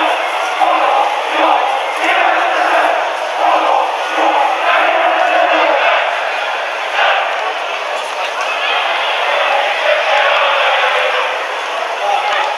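A large crowd cheers and chants steadily in an open stadium.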